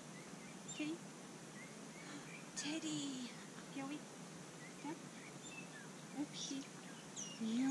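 A woman speaks briefly to a dog nearby.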